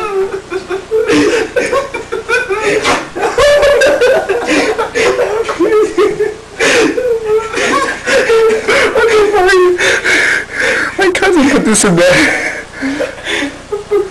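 A young man talks and laughs loudly close by, with animation.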